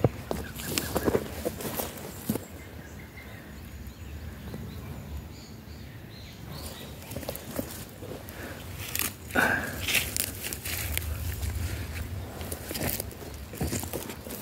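Rubber boots crunch on dry, stony soil.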